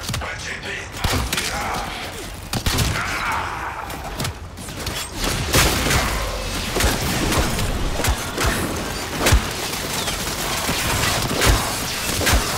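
Gunfire and blasts crackle in fierce bursts.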